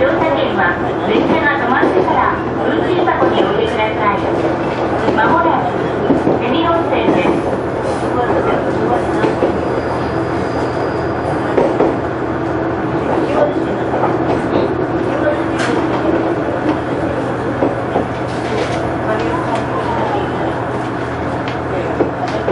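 A train engine drones steadily.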